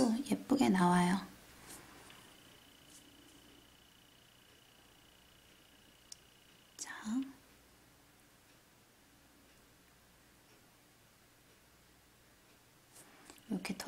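A small brush softly dabs on a fingernail.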